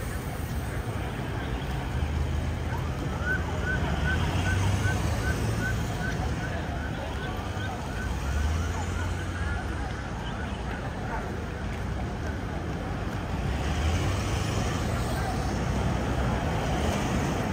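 Large vehicles' engines hum as they roll slowly past, close by.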